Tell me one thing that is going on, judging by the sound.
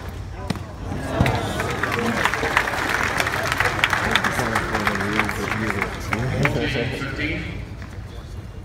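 A crowd cheers and applauds in a large open stadium.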